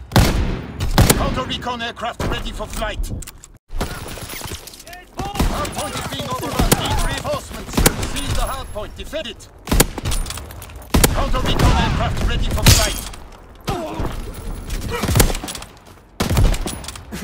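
Sniper rifle shots crack in a video game.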